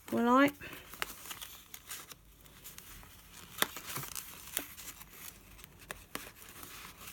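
Paper clicks and taps softly as it is pressed flat.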